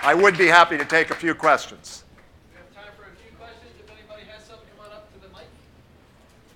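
A middle-aged man speaks calmly to an audience through a clip-on microphone.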